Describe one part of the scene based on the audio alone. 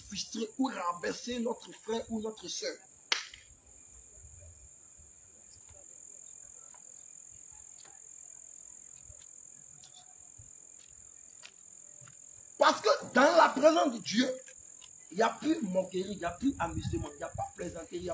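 A man speaks with animation outdoors.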